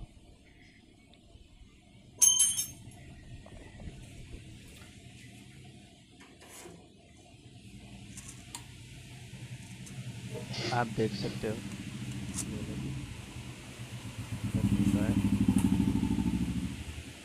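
Hands handle a small plastic part, with faint clicks and rustles.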